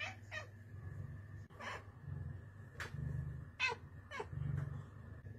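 A cat meows repeatedly in short calls.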